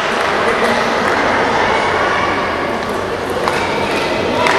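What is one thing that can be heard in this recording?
A ball clicks back and forth between table tennis bats.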